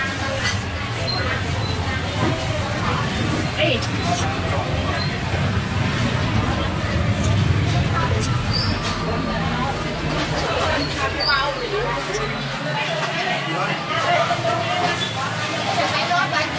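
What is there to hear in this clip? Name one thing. A woman slurps noodles loudly up close.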